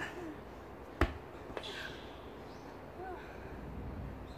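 A dumbbell thuds down on rubber flooring.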